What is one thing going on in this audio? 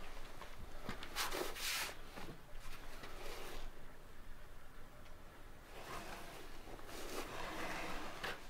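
A wooden slab scrapes and knocks on a wooden stand.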